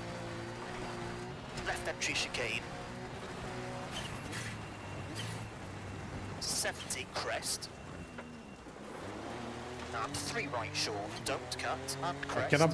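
A rally car engine revs hard, rising and falling as the car shifts gears.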